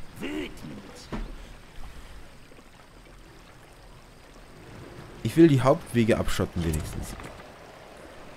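A young man talks into a microphone with animation, close by.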